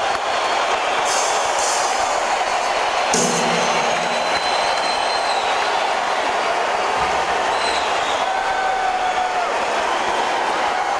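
Drums and cymbals are struck in a steady beat.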